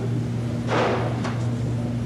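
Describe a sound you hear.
A plastic bucket thumps down onto a counter.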